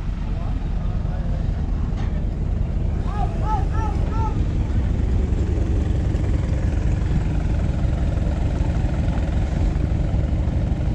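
An off-road vehicle's engine rumbles and strains.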